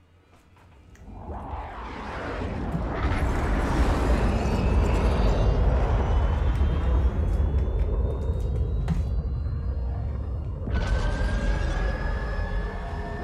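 A jet aircraft roars loudly overhead.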